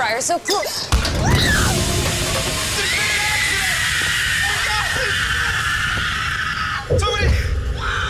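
A man screams in pain.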